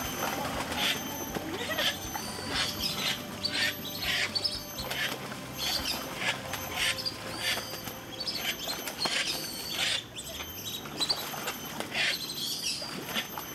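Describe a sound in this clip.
Ducks whistle and call in shrill bursts.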